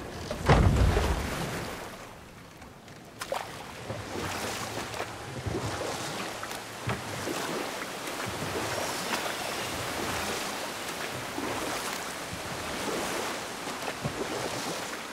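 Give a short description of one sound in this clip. Oars splash steadily through water as a small boat is rowed.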